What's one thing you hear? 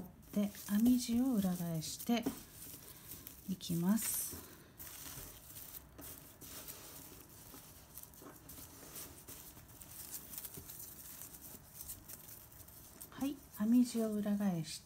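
Thick knitted fabric rustles softly as hands handle it.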